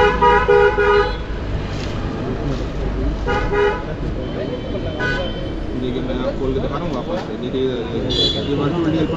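A man talks nearby in a tense, animated voice.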